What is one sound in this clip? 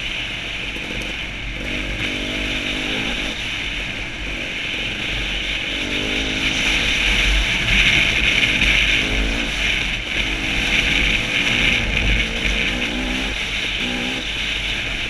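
A dirt bike engine revs up and down as it rides along.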